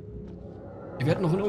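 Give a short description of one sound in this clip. A man talks calmly over a microphone.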